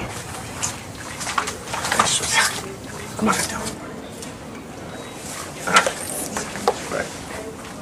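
A woman speaks quietly.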